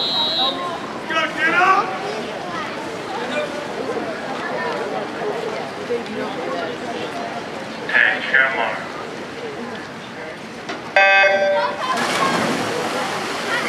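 A crowd of people chatters in an echoing indoor pool hall.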